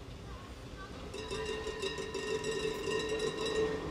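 A tram hums at a stop nearby.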